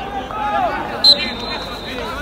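A referee's whistle blows one short, sharp blast.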